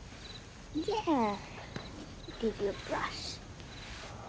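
A young girl speaks softly nearby.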